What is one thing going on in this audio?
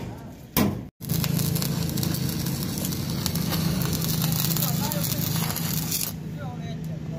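An electric welder crackles and hisses steadily.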